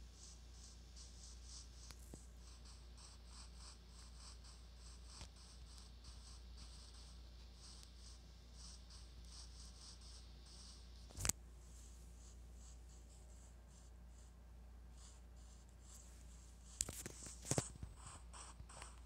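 Footsteps crunch rhythmically on grass.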